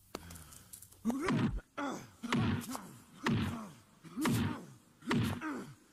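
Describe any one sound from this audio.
Punches land with heavy thuds.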